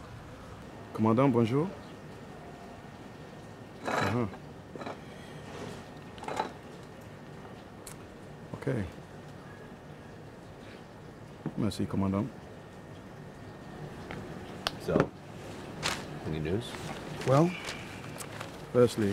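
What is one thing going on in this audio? A man talks calmly on a phone close by.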